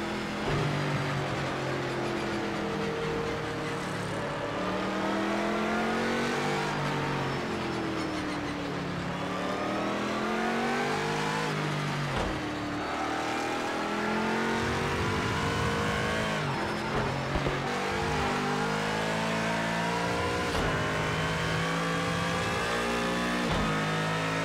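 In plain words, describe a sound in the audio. A racing car's engine roars, rising and falling in pitch as it shifts gears.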